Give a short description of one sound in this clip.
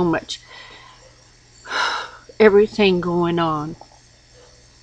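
An elderly woman speaks calmly and close to a microphone.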